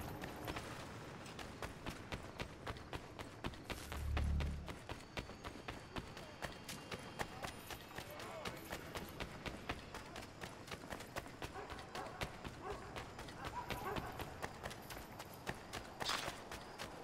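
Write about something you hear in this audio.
Quick footsteps run over cobblestones.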